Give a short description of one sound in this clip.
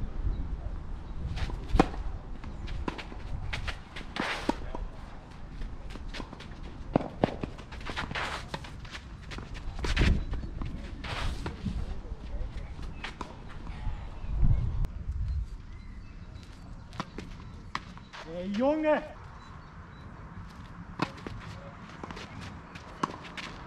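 Shoes scuff and slide on a clay court.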